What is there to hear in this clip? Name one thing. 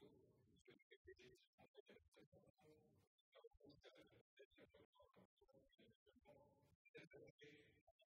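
A middle-aged man speaks steadily into a microphone, reading out a statement.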